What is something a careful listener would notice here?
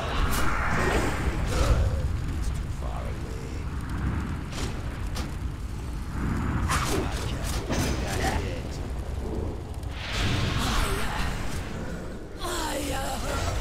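Spells blast with loud impacts.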